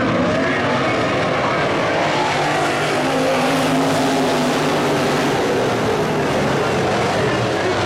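Race car engines roar loudly as a pack of cars speeds around a dirt track.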